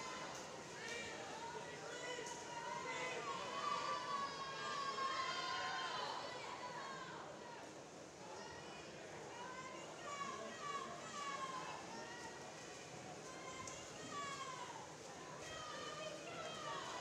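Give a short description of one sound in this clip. A crowd of spectators cheers and shouts, echoing in a large hall.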